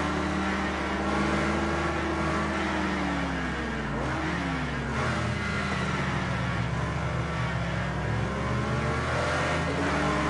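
Other car engines drone nearby.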